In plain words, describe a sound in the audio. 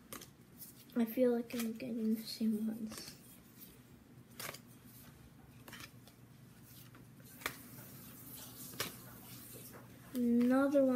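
A young boy speaks quietly and close by.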